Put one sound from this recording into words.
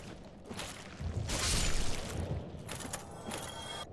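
Metal blades clash in a game fight.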